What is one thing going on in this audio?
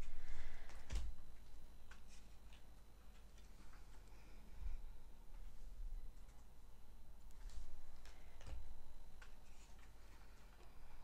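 Playing cards slap softly onto a table.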